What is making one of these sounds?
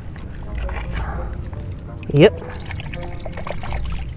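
A hand splashes and stirs water in a shallow pool.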